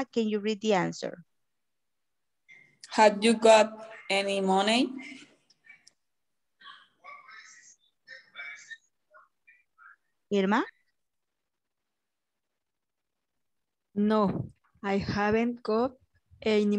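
A woman speaks clearly over an online call, explaining in a teaching manner.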